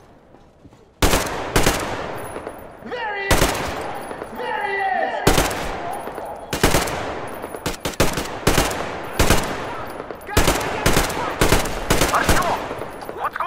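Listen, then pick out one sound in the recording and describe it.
Gunshots fire in loud single blasts that echo away.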